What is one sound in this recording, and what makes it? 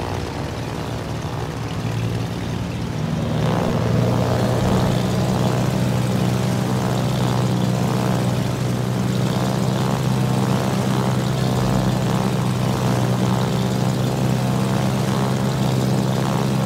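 Propeller plane engines drone steadily, growing louder.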